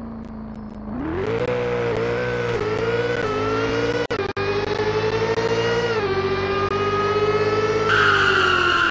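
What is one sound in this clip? A sports car engine revs up, accelerating through the gears.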